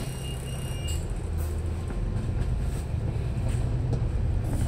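A bus engine revs as the bus pulls away.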